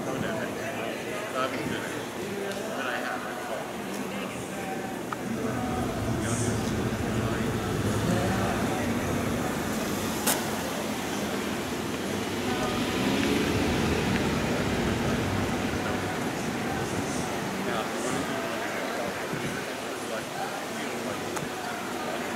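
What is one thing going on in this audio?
Men and women chat at a distance outdoors.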